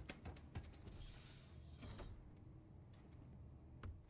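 A sliding door opens with a soft whoosh.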